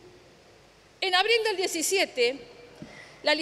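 A middle-aged woman speaks firmly into a microphone.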